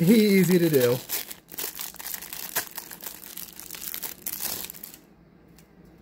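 Plastic wrapping crinkles as it is unwrapped.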